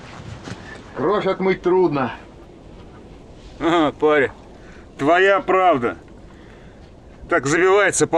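A man speaks in short, calm phrases close by.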